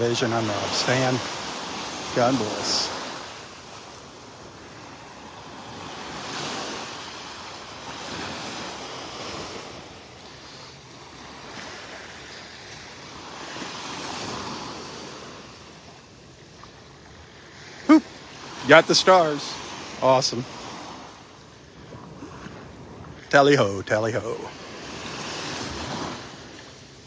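Small waves wash gently onto a sandy shore in slow swells.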